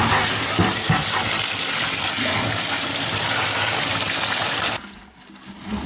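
Water gushes loudly into a bucket.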